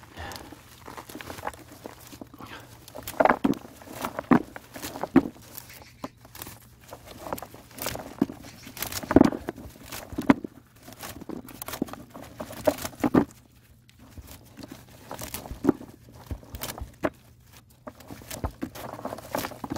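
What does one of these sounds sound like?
Peanut pods click and patter into a plastic tub.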